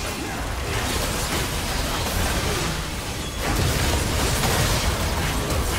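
Video game spell effects crackle and boom in a busy battle.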